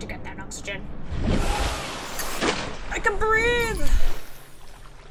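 Water rushes and bubbles loudly.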